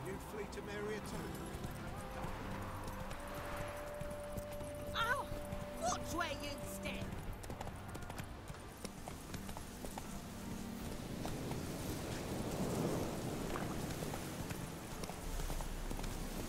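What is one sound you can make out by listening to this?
Horse hooves thud at a gallop on a dirt path.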